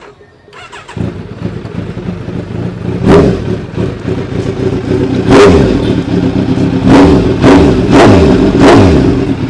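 A motorcycle engine starts and idles with a rumble.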